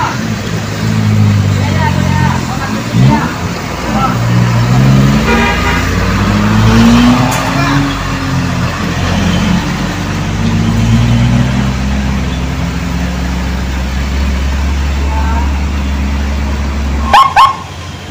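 A truck engine rumbles and strains as it climbs.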